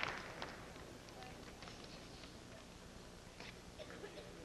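Paper rustles in an elderly man's hands.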